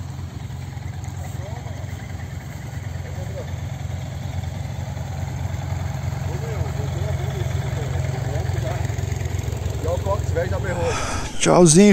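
Motorcycle engines idle with a steady low rumble.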